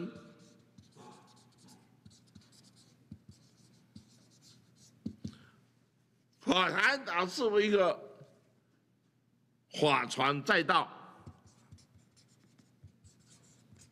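A marker pen squeaks and scratches on paper.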